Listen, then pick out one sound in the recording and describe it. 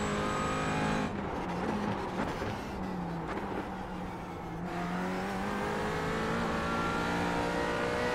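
A racing car engine drops in pitch as the car slows for a corner, then climbs again.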